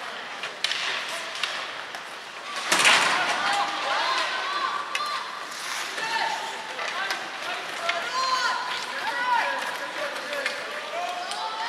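Hockey sticks clack against the puck and the ice.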